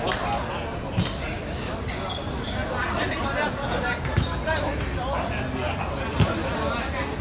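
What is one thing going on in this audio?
A football thumps as it is kicked outdoors.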